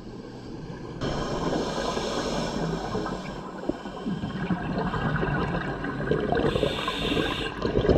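Exhaled bubbles rush from a scuba regulator underwater.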